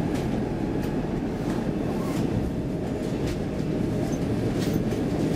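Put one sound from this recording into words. A tram rumbles steadily along its rails, heard from inside.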